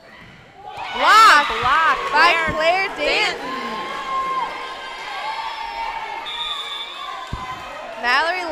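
Young women cheer and shout together in an echoing gym.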